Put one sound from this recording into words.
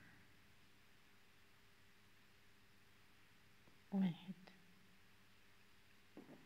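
A crochet hook softly rubs and pulls yarn.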